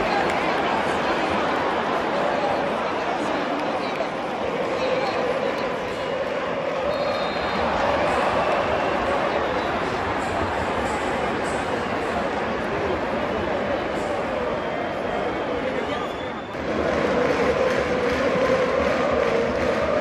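A large stadium crowd chants and roars loudly in a vast open space.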